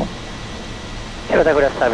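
An aircraft engine runs with a steady drone.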